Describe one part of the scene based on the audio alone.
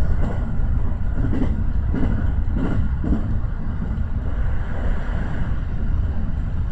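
A train rattles across a steel bridge.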